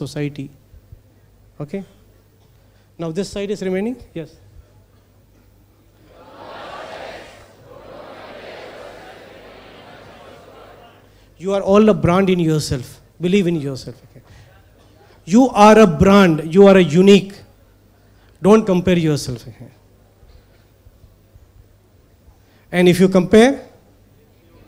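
A man speaks slowly through a microphone and loudspeakers in a large hall, with pauses.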